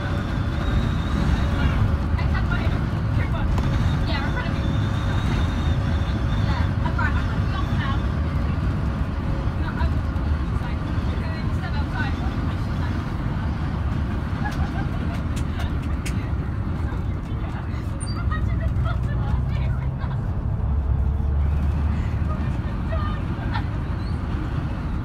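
A bus engine rumbles steadily from inside the bus as it drives along.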